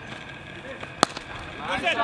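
A cricket bat cracks against a ball.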